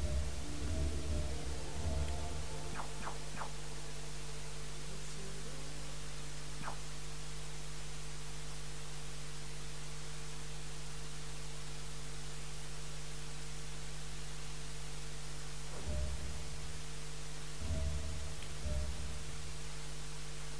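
Short electronic menu chimes sound several times.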